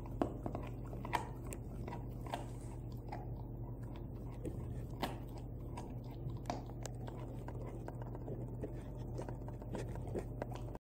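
A dog chews and gnaws on a bone with wet, crunching sounds close by.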